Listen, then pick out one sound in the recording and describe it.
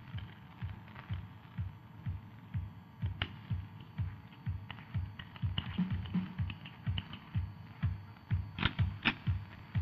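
A pistol clicks metallically as a man handles it.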